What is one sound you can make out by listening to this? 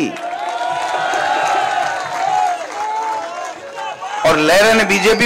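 A large crowd chants and cheers outdoors.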